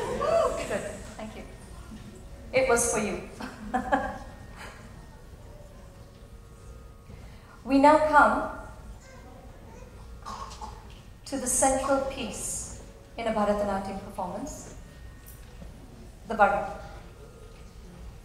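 Several women sing short phrases together through microphones in a hall.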